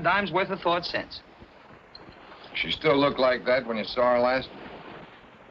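A middle-aged man speaks calmly through an old, hissy film soundtrack.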